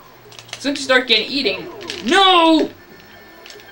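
Small game creatures chirp and squeal in high, cartoonish voices.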